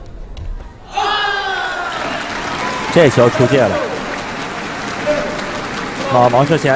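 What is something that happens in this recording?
A large crowd cheers loudly in an echoing hall.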